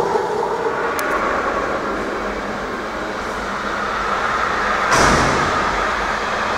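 A freight train rolls past with a steady clatter.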